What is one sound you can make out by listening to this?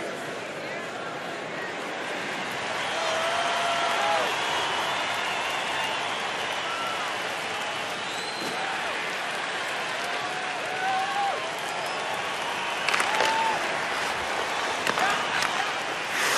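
A large crowd cheers and whistles in an echoing arena.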